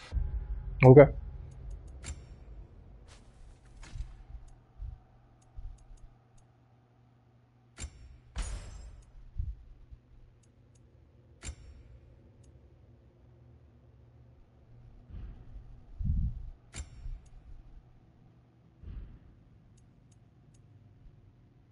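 Short game menu clicks and chimes sound as options change.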